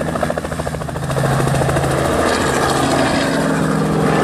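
A helicopter's engine roars louder as the helicopter lifts off.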